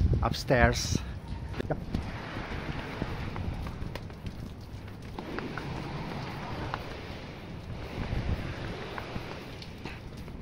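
Footsteps climb concrete stairs.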